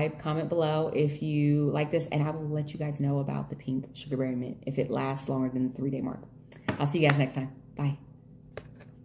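A young woman talks to the listener close to a microphone, with animation.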